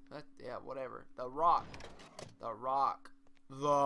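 A cash register drawer springs open with a metallic clatter.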